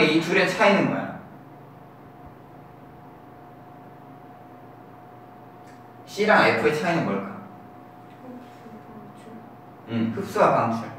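A young man speaks calmly, explaining in bursts.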